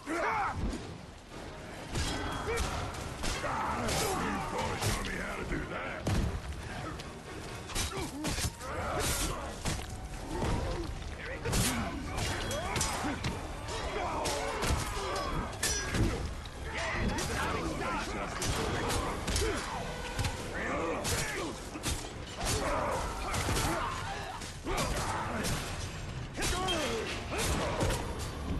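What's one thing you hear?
Heavy blows thud against bodies.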